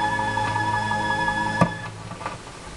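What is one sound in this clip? Music plays from a vinyl record and stops abruptly.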